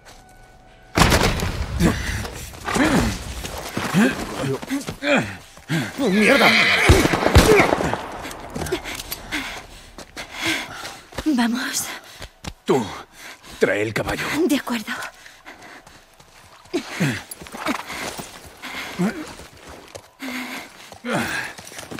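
A man groans in pain and breathes heavily.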